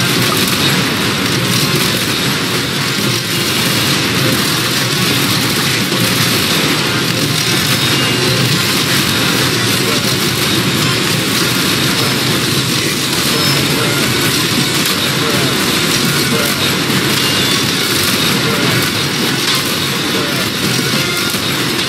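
Laser guns fire in a rapid, steady barrage.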